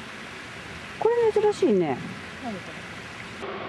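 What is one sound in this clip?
A bird gives a sharp, high call twice.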